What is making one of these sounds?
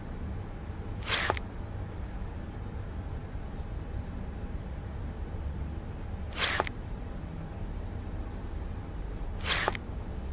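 Game chips slide into place with a soft whoosh.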